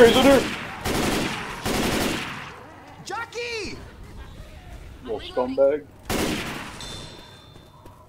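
A rifle fires loud bursts of shots with a ringing echo.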